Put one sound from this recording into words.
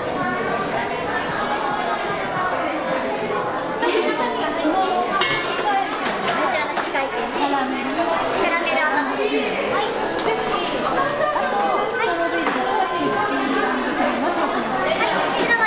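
Women talk nearby in a busy, echoing room.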